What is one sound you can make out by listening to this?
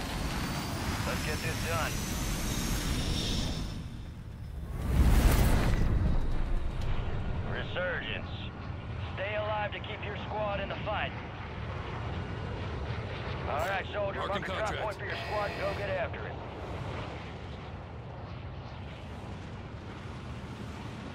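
Large jet engines roar steadily.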